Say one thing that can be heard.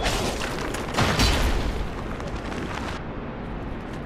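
A heavy blade slashes through the air with a loud whoosh.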